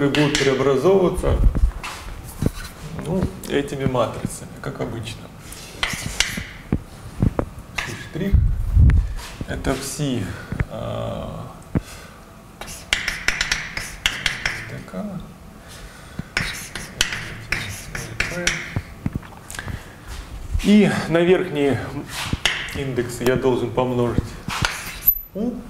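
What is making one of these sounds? A young man speaks calmly, lecturing.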